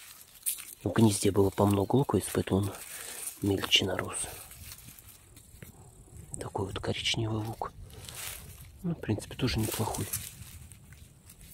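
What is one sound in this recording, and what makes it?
Dry onion stalks rustle softly as a hand handles the onions.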